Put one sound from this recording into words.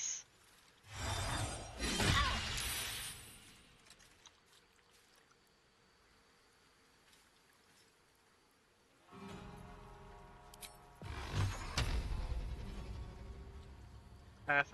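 A magic spell bursts with a loud crackling whoosh.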